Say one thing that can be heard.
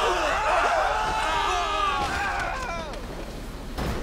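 A heavy truck crashes and tumbles down a rocky slope.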